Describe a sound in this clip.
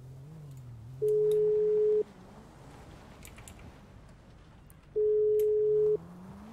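A phone call rings out with a steady, repeating tone.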